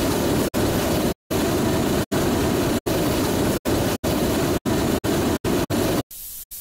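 A jetpack roars in steady bursts of thrust.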